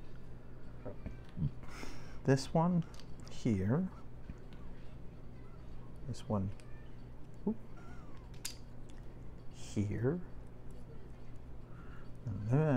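Plastic toy bricks click and snap together.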